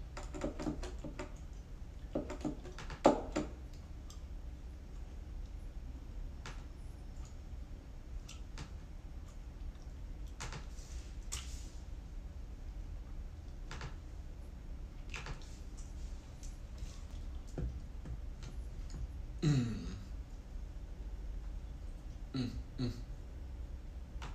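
Plastic keyboard keys tap and clack softly.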